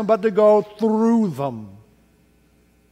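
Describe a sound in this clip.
An elderly man speaks slowly through a microphone in an echoing room.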